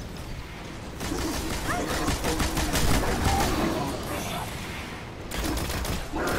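A blast booms and rumbles.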